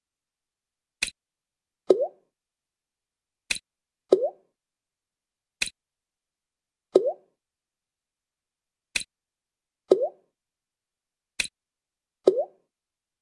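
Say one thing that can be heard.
Short clicks and soft whooshing blips sound again and again at a steady pace.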